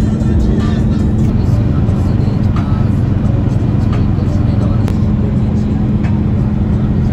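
A vehicle engine hums steadily from inside as it drives.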